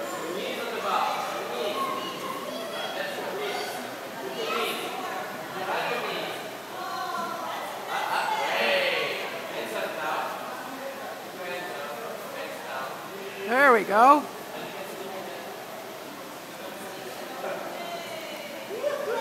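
A man calls out from a distance in a large echoing hall.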